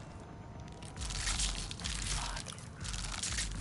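Loose debris rattles and rustles as it is searched by hand.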